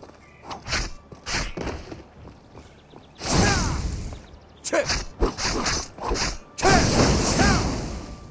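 Heavy blows thud against an armoured foe.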